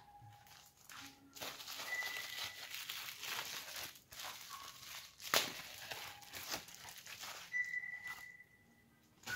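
Bubble wrap crackles as it is handled and pulled open.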